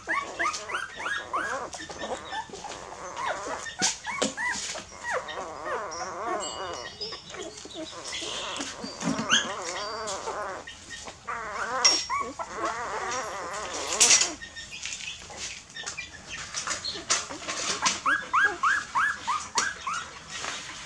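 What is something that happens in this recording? Puppies suckle with wet smacking sounds.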